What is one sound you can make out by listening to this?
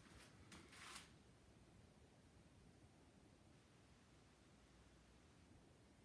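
A paintbrush scrapes softly across a canvas.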